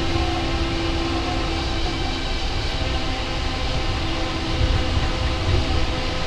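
A train hums and rumbles steadily as it rolls along its track.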